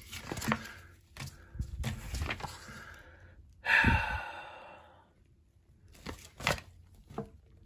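A sheet of paper rustles as it is handled.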